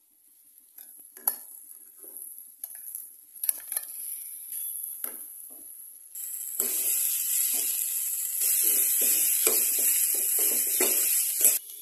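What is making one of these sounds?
A metal spatula scrapes and taps against a pan.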